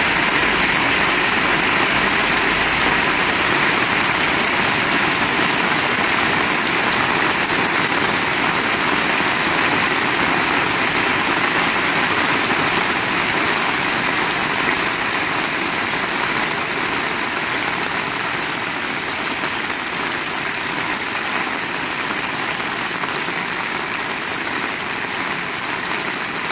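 Heavy rain pours steadily outdoors.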